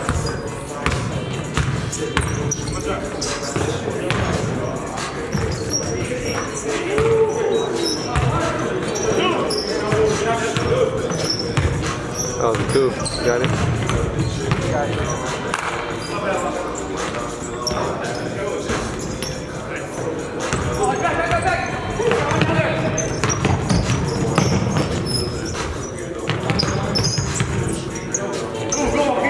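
Sneakers squeak on the gym floor.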